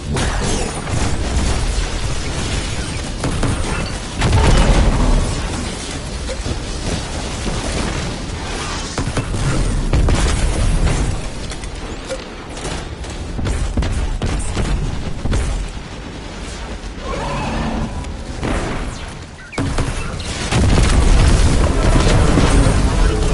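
Explosions boom with fiery bursts.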